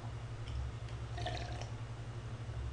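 A young man gulps a drink.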